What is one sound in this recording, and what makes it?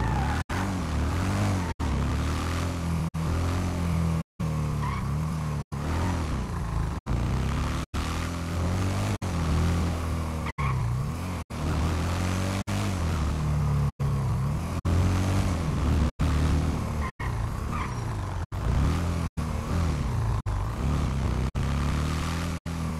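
A quad bike engine hums steadily as it drives along a road.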